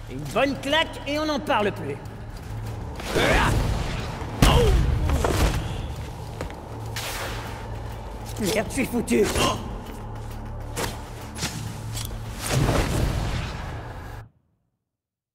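Heavy blows and whooshing strikes land during a fight.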